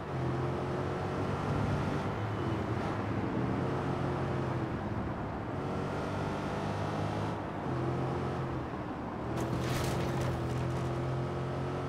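A car engine roars steadily, its pitch rising and falling as the car speeds along.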